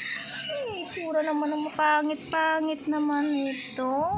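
A small dog chews food close by.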